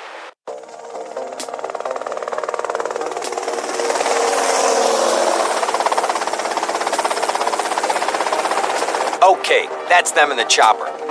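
A helicopter's rotor chops rhythmically, growing louder as it approaches.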